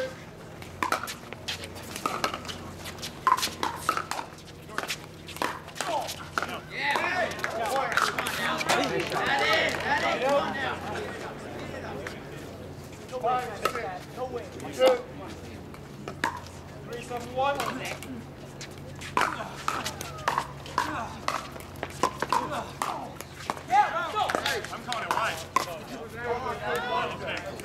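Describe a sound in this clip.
Paddles knock a ball back and forth in quick hollow pops.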